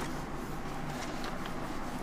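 A cloth rubs across a whiteboard.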